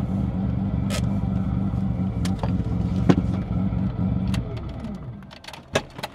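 A car engine idles with a low, steady rumble, then shuts off.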